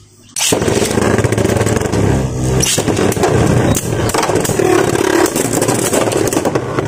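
Spinning tops whir and scrape against a plastic bowl.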